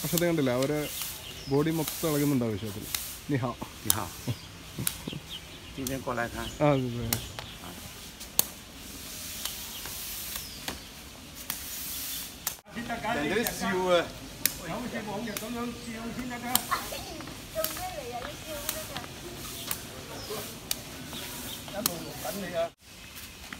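A shuttlecock is kicked with sharp taps.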